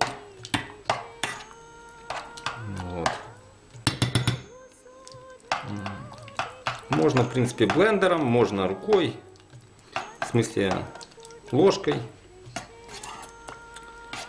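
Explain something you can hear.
A spoon scrapes and clinks against a metal pot while stirring.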